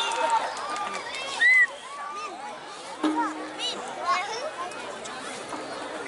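A gamelan ensemble plays metallic percussion.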